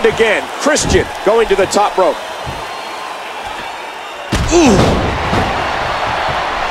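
A crowd roars and cheers in a large arena.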